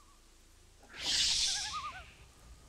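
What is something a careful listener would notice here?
A magic spell bursts with a loud rushing whoosh.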